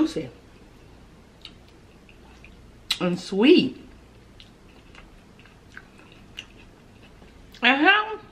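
A young woman chews food with soft wet mouth sounds.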